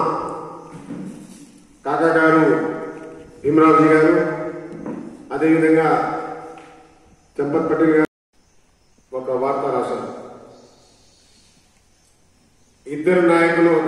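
A man speaks loudly through a microphone in bursts, with a ringing echo.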